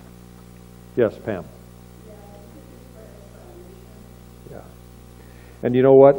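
An older man speaks calmly through a microphone, pausing between phrases.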